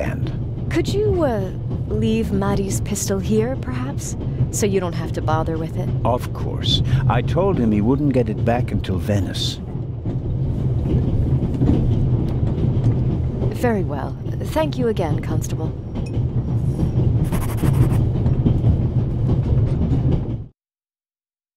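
A train rumbles steadily along its tracks.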